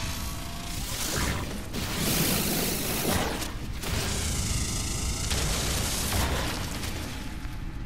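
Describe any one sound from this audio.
A mining beam hums and crackles as it fires.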